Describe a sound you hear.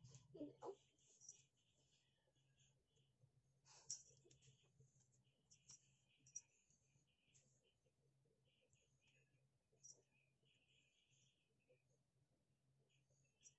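A toy on a wand rustles lightly as it is waved about.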